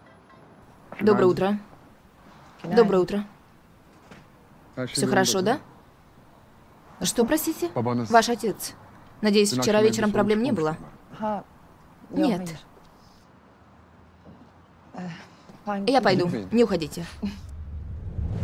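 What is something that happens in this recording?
A young woman speaks softly and emotionally nearby.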